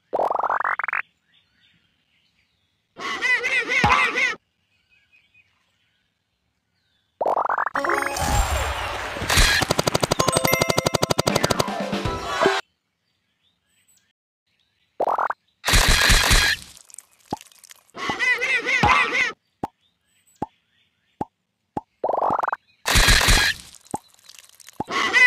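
Short electronic game jingles and chimes play in bursts.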